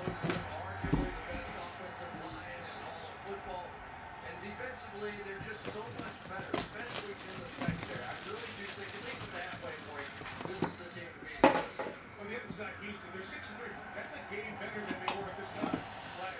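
A cardboard box slides and taps on a table.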